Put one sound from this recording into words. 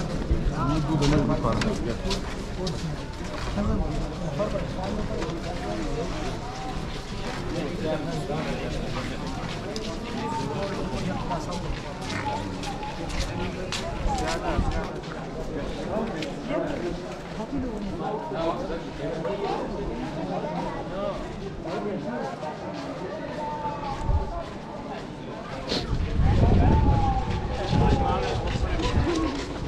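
Men talk and murmur nearby outdoors.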